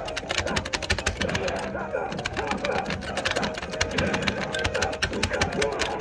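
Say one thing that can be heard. An arcade game plays rapid hits and sound effects through its speakers.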